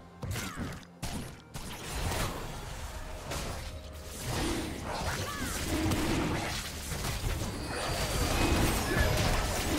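Spell effects and combat sounds from a fantasy battle game whoosh and crackle.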